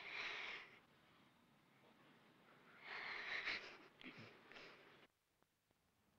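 A woman laughs softly close by.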